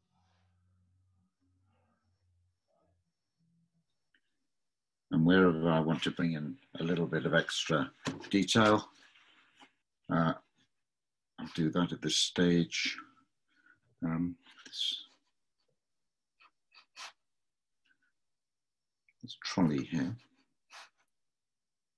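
A brush dabs and scratches softly on paper.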